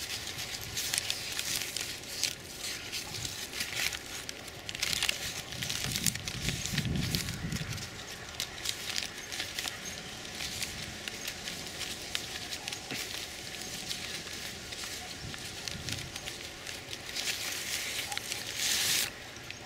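A paper bag crinkles and rustles in a hand.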